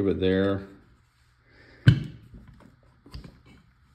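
Metal and plastic parts knock as they are set down.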